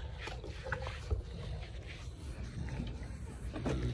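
A brush scrapes through an animal's fur.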